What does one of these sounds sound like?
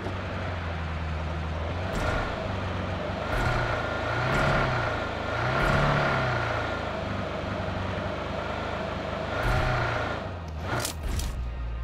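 A car engine hums steadily and revs up and down.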